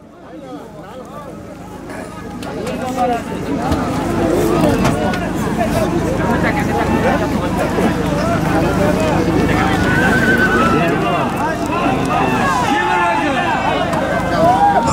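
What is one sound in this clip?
A large crowd murmurs and shouts outdoors.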